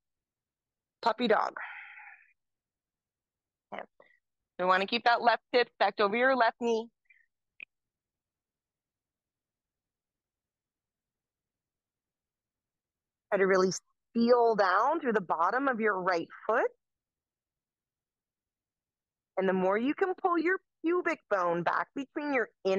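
A young woman speaks calmly and clearly, close to a microphone, in short phrases with pauses.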